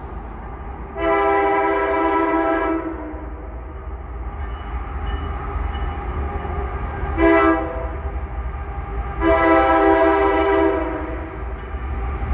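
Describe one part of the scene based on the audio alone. A train horn blows loudly in long and short blasts.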